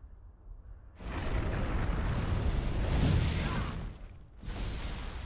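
Weapons clash with a loud, noisy burst.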